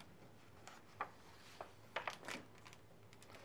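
A paper page turns with a soft rustle.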